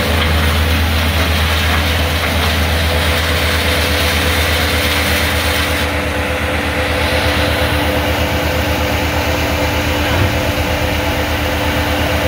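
A wood chipper's engine roars steadily up close.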